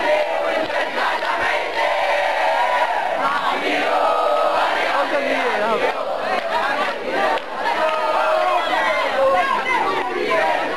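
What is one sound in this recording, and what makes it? A crowd of young people shouts and chants loudly outdoors.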